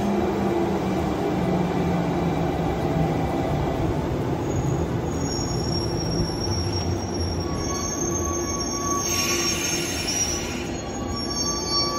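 A train rumbles past along the rails and slows down.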